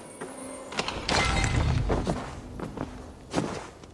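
Coins clink and rattle as a pot of money is scooped up.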